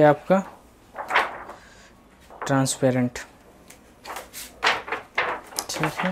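A glossy album page rustles as it is turned by hand.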